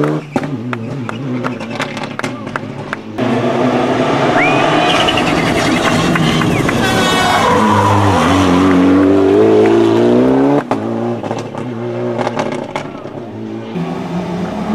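A rally car's exhaust pops and crackles as it slows.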